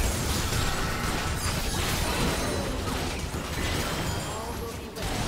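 Game spells burst and clash in a busy fight.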